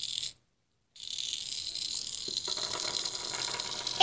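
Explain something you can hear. A small plastic toy taps down on a wooden surface.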